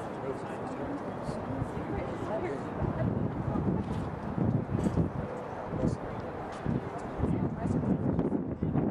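A group of young women chatter and cheer together at a distance outdoors.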